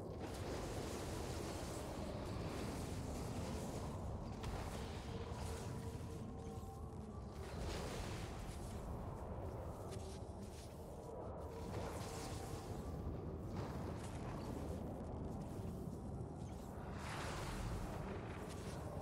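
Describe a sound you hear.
A storm rumbles and hisses steadily.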